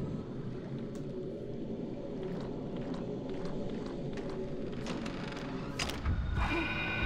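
Footsteps tap slowly on a wooden floor.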